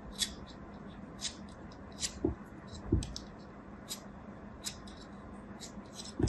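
A blade cuts through soft clay with small crisp clicks.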